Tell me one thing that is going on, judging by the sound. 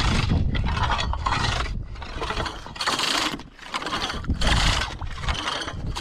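A blade chops and scrapes at broken ice.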